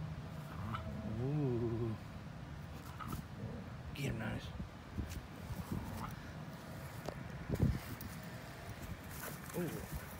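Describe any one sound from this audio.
Dogs growl playfully as they wrestle.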